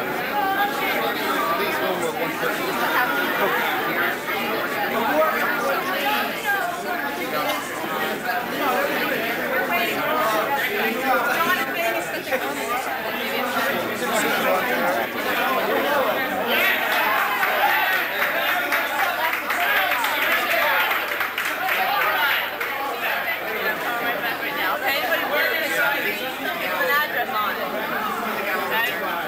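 A crowd of people chatter loudly all at once.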